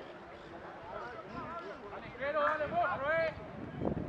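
Players call out faintly across an open field.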